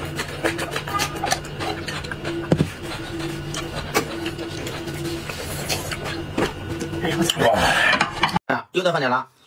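A man slurps and chews food noisily, close to a microphone.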